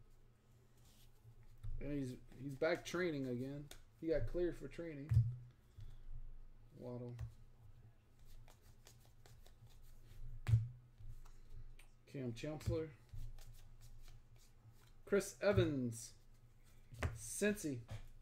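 Trading cards rustle and flick as they are handled.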